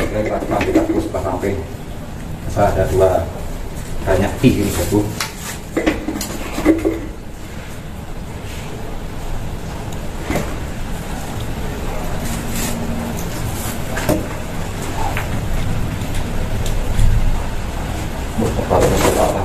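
Plastic pipes knock and rattle against a wall.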